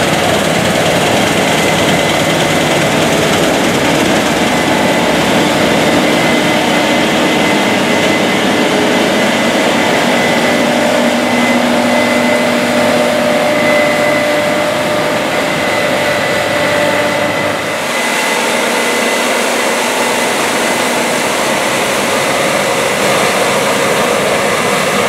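A combine harvester's engine roars steadily close by.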